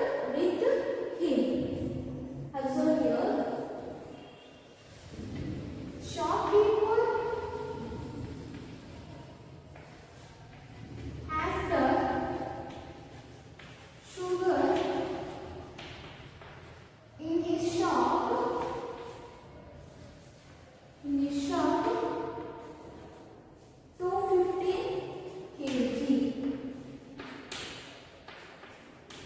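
A young woman speaks slowly and clearly.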